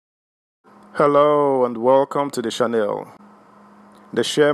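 A man speaks with animation, close by.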